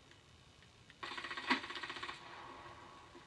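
A rifle fires in rapid bursts.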